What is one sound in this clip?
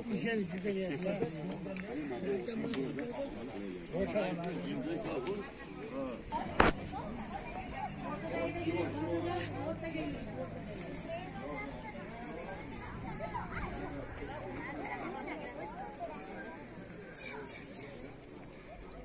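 A crowd of men and children talks and chatters outdoors.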